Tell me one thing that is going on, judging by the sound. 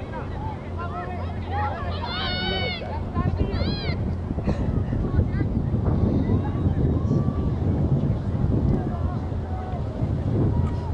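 Distant players and spectators shout and call out across a field.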